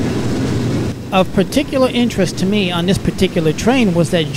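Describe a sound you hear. Train wheels squeal sharply on the rails.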